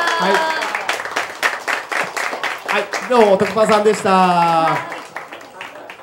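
A crowd claps and cheers in an echoing room.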